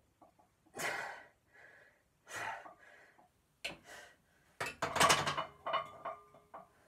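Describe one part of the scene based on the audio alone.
A young man breathes out hard in loud bursts, straining and grunting close by.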